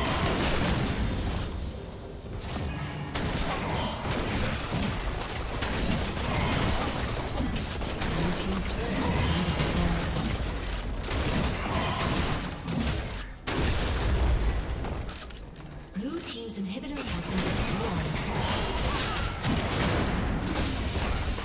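Fantasy spell blasts and sword clashes crackle in a busy video game battle.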